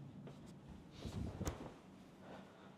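A body drops onto a soft mattress with a dull thump.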